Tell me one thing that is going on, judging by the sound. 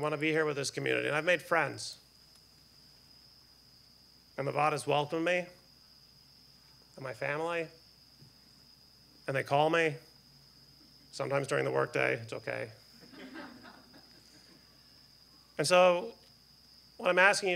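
A middle-aged man speaks calmly into a microphone, with pauses between phrases.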